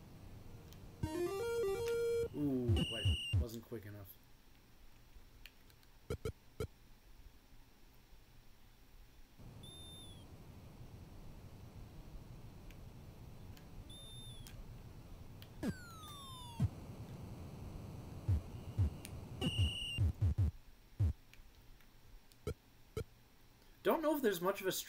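A video game plays bleeping, chirping electronic sounds.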